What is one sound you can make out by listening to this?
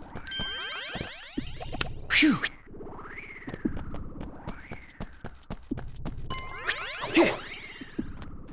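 Bright sparkling chimes ring out in quick rising runs.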